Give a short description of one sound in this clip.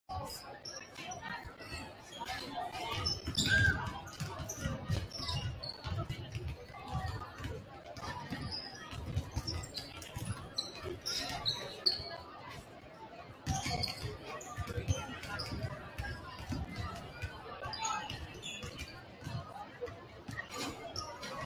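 A crowd murmurs and chatters in the stands.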